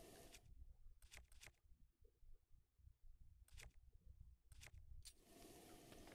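Soft clicks tick a few times in near silence.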